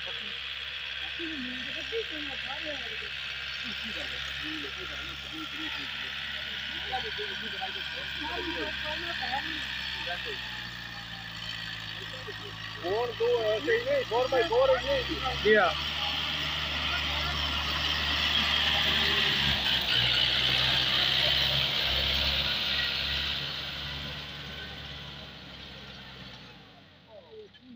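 A tractor engine rumbles steadily, growing louder as it passes close by.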